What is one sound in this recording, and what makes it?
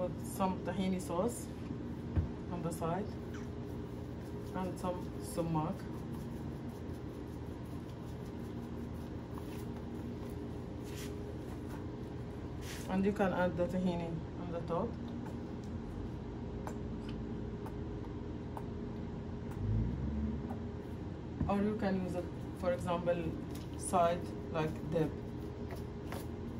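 A spice shaker rattles as a woman shakes it over food.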